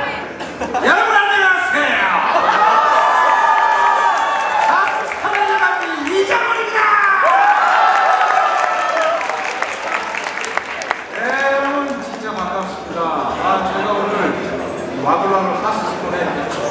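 A middle-aged man sings loudly into a microphone, heard through loudspeakers in a large echoing hall.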